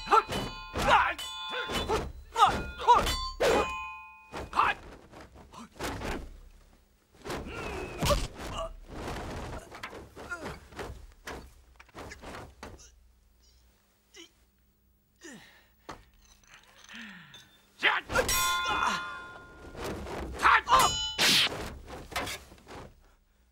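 Blades whoosh through the air.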